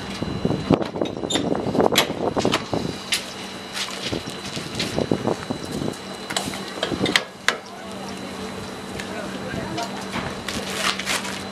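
Metal clanks and knocks sharply.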